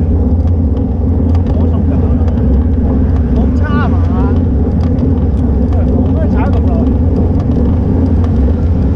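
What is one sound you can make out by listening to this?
Wind rushes loudly over the microphone of a fast-moving bicycle.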